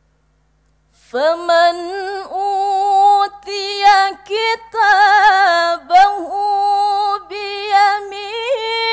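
A woman chants melodiously into a microphone, holding long, ornate, wavering notes.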